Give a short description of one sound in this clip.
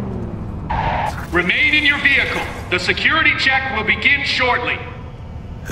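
A man speaks firmly and clearly nearby.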